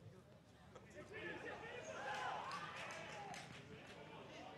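A crowd of spectators cheers outdoors.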